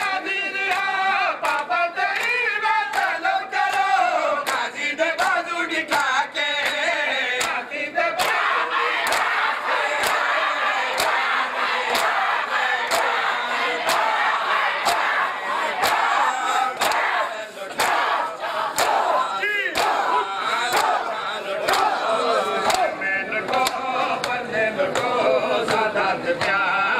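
A crowd of men chants loudly together.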